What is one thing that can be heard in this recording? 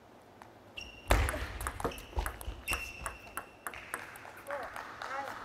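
A table tennis ball is struck back and forth with sharp clicks.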